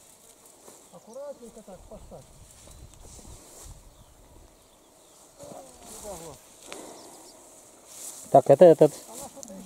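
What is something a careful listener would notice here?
A man speaks in short bursts close by, outdoors.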